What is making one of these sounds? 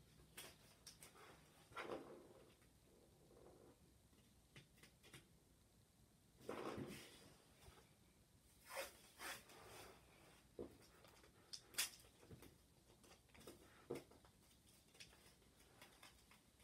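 Hands press and rub masking tape down onto paper.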